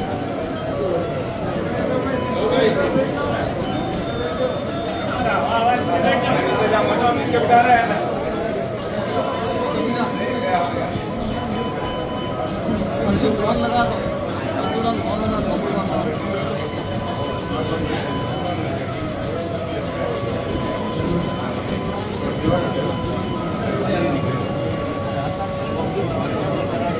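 A crowd of men murmurs and talks in a room that echoes.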